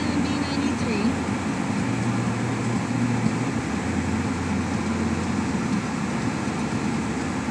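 A car engine hums steadily inside the car as it drives along a road.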